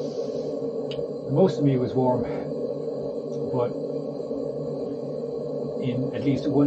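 A camping stove burns with a steady low roar.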